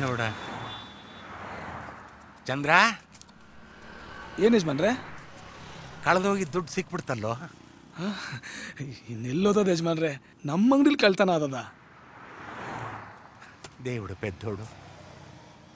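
An older man speaks cheerfully nearby.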